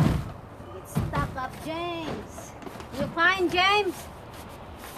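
A young woman speaks up close.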